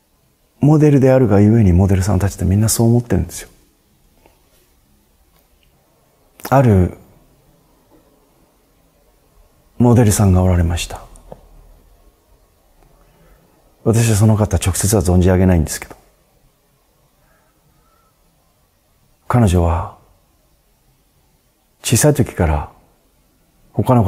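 A middle-aged man speaks calmly and close to a microphone, in short phrases with pauses.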